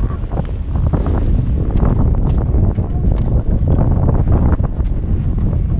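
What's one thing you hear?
Wind buffets the microphone loudly outdoors.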